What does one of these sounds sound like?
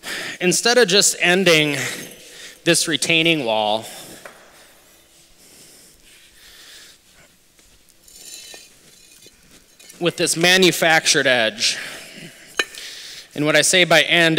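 Stone blocks knock and scrape as they are set down.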